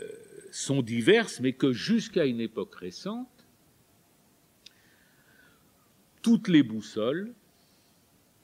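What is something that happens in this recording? An elderly man speaks calmly and thoughtfully into a close microphone, with long pauses.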